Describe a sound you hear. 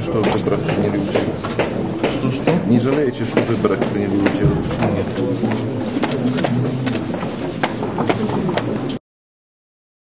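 A middle-aged man speaks agitatedly into a close microphone.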